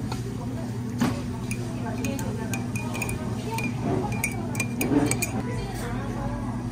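A spoon stirs and clinks against a mug.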